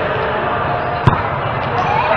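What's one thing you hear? A volleyball is struck by hand with a sharp slap in an echoing indoor hall.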